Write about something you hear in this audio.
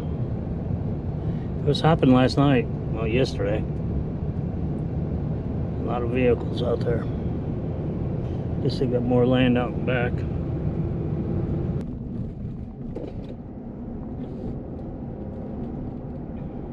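A car drives along a road with a steady low rumble of engine and tyres.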